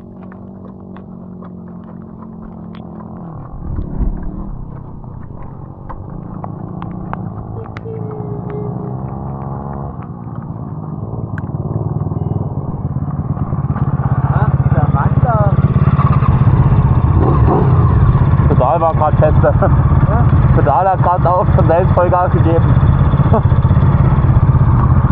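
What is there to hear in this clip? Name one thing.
A buggy engine runs and revs close by.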